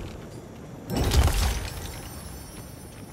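A loud burst with a low rumble plays as a game sound effect.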